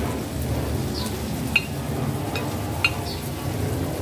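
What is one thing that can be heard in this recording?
Minced meat drops into a hot pan and the sizzling grows louder.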